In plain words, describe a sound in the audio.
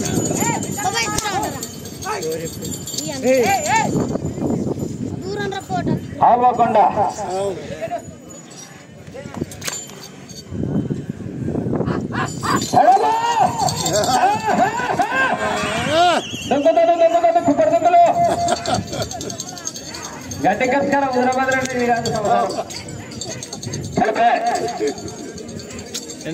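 A man announces excitedly over a loudspeaker outdoors.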